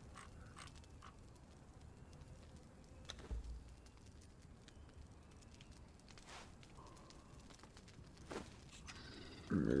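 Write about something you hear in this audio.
Game menu clicks tick quietly.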